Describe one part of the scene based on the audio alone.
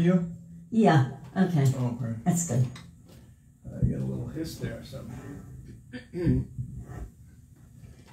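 An elderly woman sings into a microphone.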